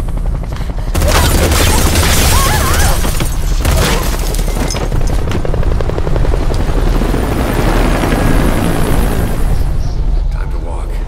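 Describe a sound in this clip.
Fire roars loudly and then dies down.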